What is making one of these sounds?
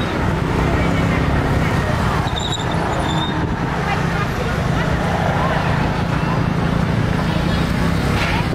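A busy outdoor market murmurs with many distant voices.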